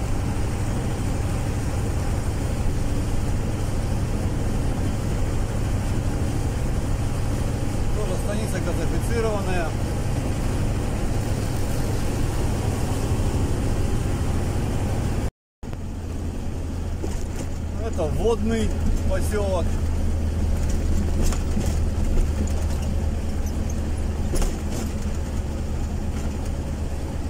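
A vehicle's engine drones steadily from inside the cab.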